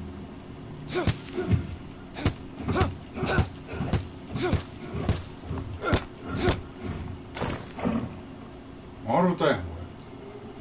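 A blade chops into wood with repeated dull thuds.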